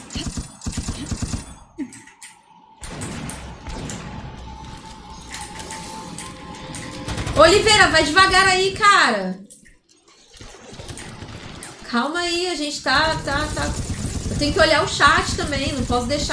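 Gunshots fire in a video game.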